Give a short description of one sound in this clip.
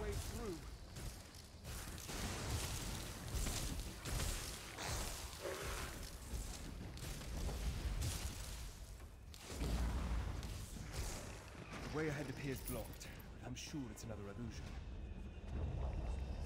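Magic spells crackle and burst.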